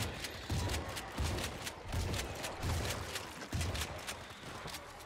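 A gun fires repeated loud shots.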